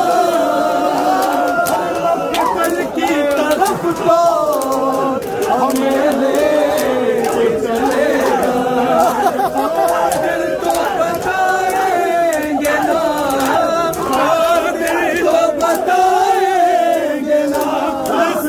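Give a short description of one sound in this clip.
A crowd of men chants loudly together in rhythm.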